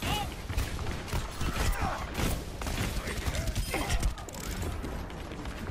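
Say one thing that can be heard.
A video game gun fires rapid shots.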